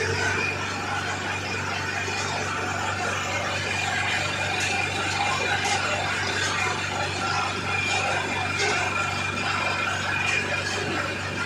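Men talk to each other at a distance outdoors.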